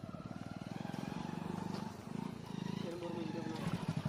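A motorcycle's wheels splash through shallow water.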